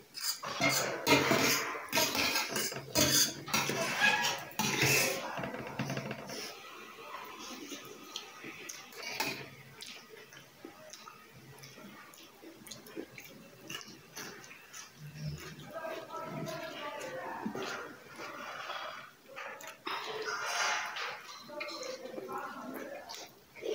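A young woman chews and slurps noodles loudly close by.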